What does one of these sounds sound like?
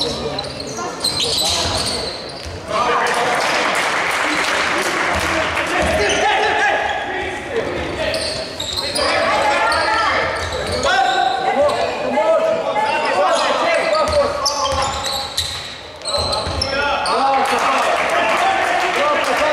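Sneakers squeak sharply on a wooden court in an echoing hall.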